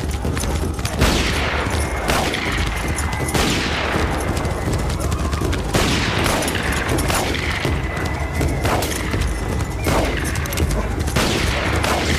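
Gunshots ring out one after another.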